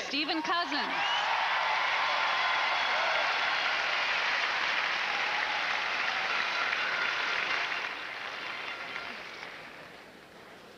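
A large crowd applauds and cheers in a big echoing arena, then fades away.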